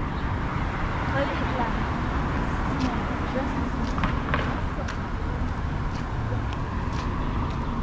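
Cars drive past on an asphalt road.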